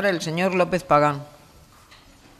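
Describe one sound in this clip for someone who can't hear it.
A middle-aged woman speaks clearly into a microphone.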